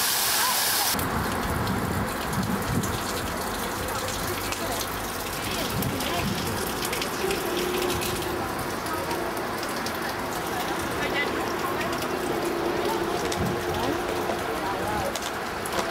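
Water trickles from a spout into a stone basin.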